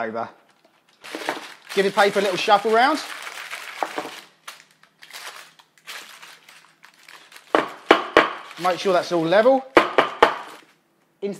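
Baking paper crinkles and rustles.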